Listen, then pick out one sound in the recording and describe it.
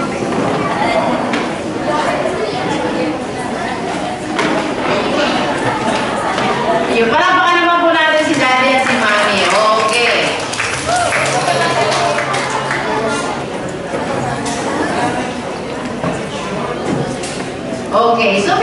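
A man speaks with animation through a microphone over loudspeakers in an echoing hall.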